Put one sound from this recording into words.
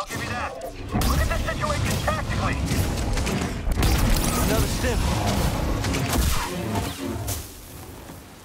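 Explosions boom loudly, one after another.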